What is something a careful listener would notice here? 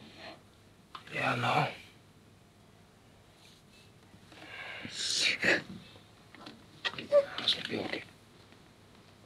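A woman sobs softly nearby.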